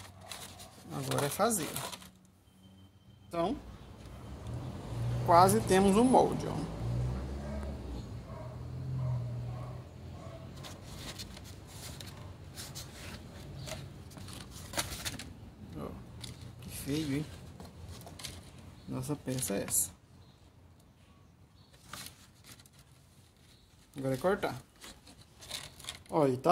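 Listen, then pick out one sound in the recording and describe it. Stiff cardboard rustles and scrapes as it is handled.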